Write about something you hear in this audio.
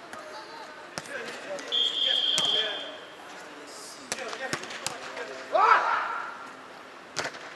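A volleyball is struck with sharp thumps in a large echoing hall.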